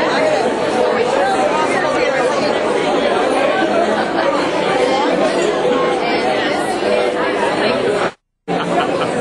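A woman laughs with delight close by.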